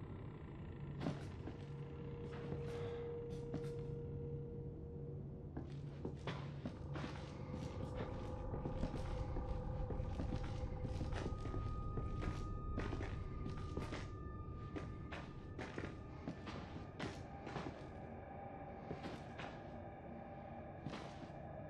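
Footsteps knock and creak on a wooden floor.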